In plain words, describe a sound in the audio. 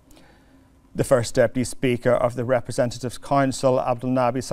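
A man speaks steadily and clearly, reading out close to a microphone.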